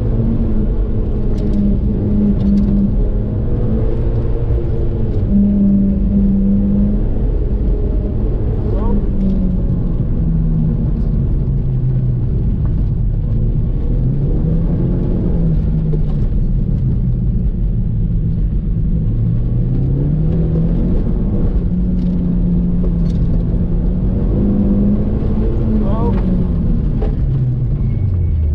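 A car engine revs up and down as the car accelerates and brakes.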